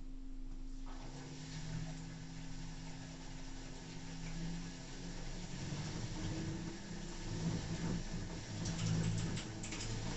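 Water and laundry slosh inside a washing machine.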